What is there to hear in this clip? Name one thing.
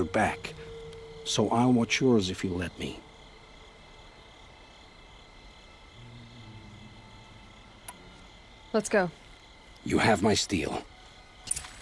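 A middle-aged man speaks calmly and warmly, close by.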